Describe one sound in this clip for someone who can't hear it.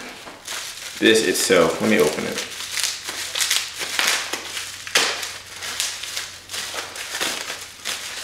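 Plastic packaging crinkles and rattles.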